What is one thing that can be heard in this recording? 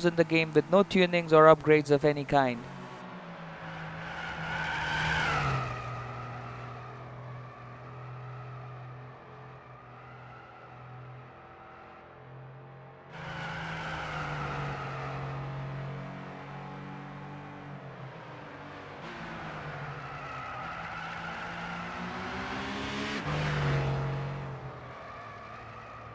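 A sports car engine revs and roars, rising and falling in pitch.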